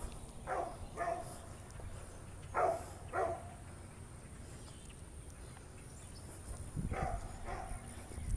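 A dog barks in short bursts outdoors.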